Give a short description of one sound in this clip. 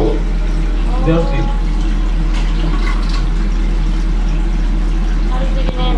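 A ceramic toilet tank lid clinks and scrapes as it is lifted.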